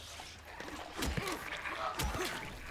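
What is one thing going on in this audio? A heavy metal pipe strikes a body with dull thuds.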